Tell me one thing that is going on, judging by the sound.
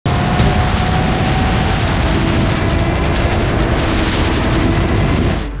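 A motorcycle engine roars steadily at speed.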